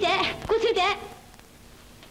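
A young woman speaks in a strained, breathless voice up close.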